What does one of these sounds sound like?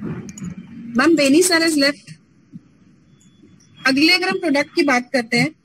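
A young woman speaks calmly into a microphone close by.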